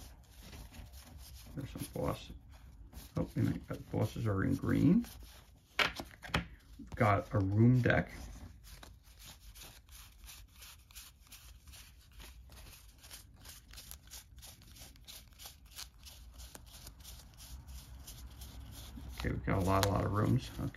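Playing cards rustle and slide against each other as they are fanned.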